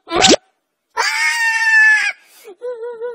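A cartoon dinosaur lets out a loud pitched roar.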